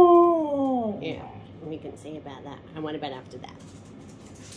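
A husky grumbles and yips in short bursts.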